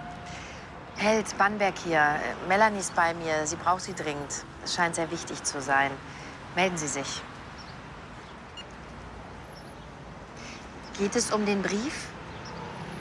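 A woman talks warmly into a phone, close by.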